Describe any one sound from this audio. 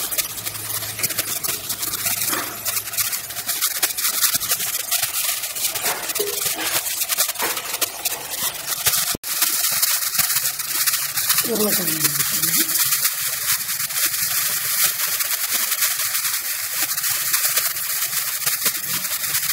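Vegetables sizzle steadily in a hot pot.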